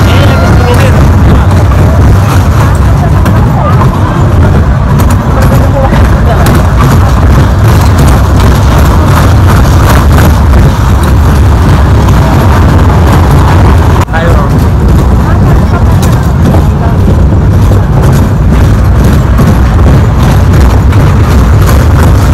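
A small ride rumbles and rattles steadily along its track.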